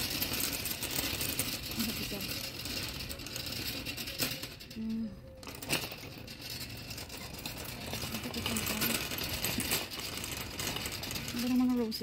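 A shopping cart rattles as it rolls over a hard floor.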